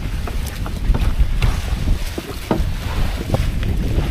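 Water drips and splashes as a wet net is hauled into a boat.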